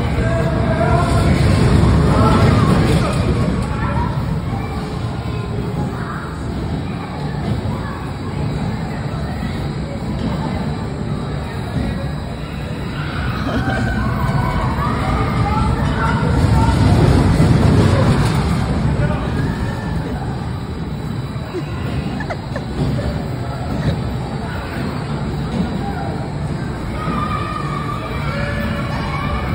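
Spinning roller coaster cars rumble along a steel track in a large echoing hall.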